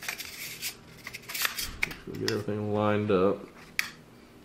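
Metal gun parts click and knock as a gun is handled.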